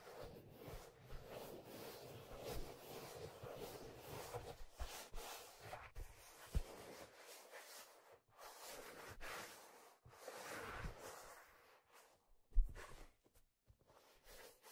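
Fingers rub and tap on smooth leather close to a microphone.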